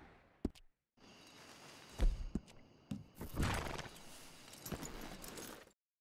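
A horse's hooves clop on dirt.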